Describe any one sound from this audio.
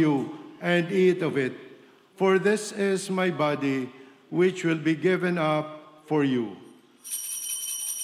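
An elderly man speaks slowly and calmly through a microphone.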